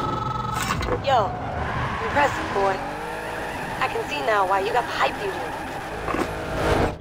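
Tyres screech while a car drifts.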